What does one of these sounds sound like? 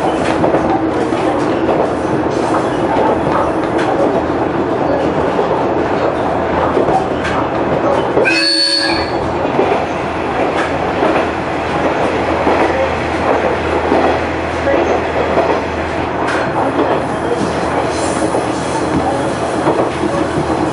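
Train wheels click and clatter over the rail joints.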